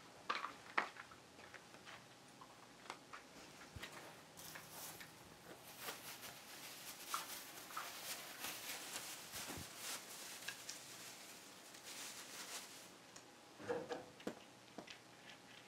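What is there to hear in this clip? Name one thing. Small items clack and tap as they are handled.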